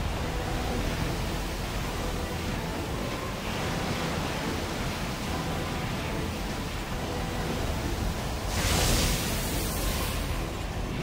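Water sprays and hisses beneath a skimming robot.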